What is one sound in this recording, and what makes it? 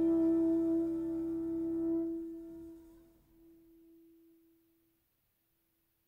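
A saxophone holds a long final note that slowly fades.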